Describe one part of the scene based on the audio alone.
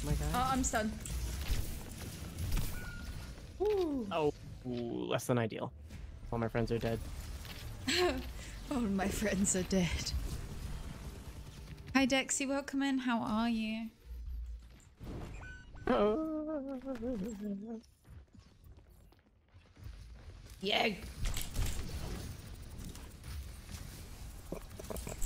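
A young woman talks animatedly into a microphone.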